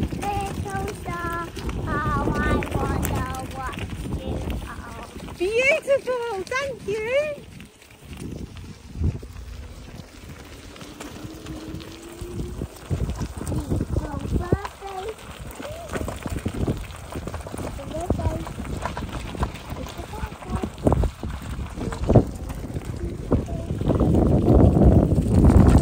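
Bicycle tyres crunch and rumble over gravel.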